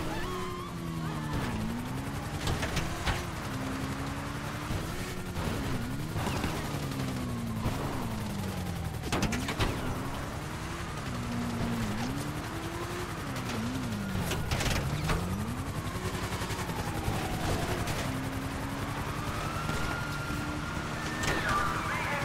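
Motorcycle tyres crunch over rough snowy ground.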